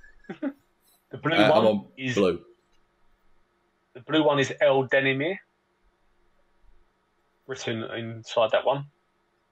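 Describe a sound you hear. A man speaks in short bursts through an online call.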